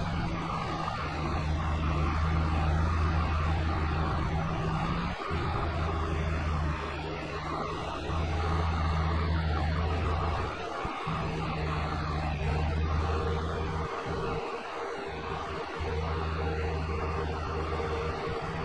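A tractor engine hums steadily as it drives along.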